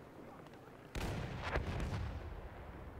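A machine gun fires in short bursts.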